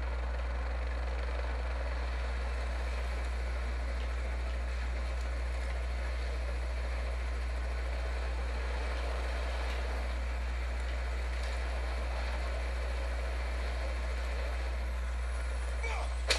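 A helicopter's rotor whirs overhead.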